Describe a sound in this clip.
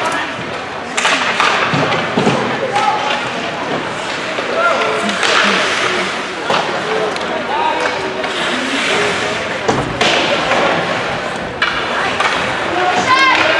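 Spectators shout and cheer in an echoing rink.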